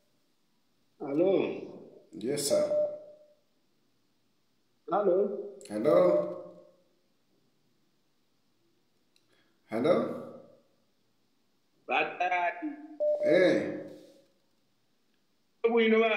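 A man sings softly close by, in short phrases with long pauses between them.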